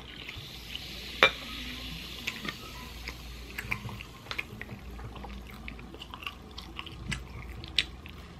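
Soda fizzes and crackles in a glass.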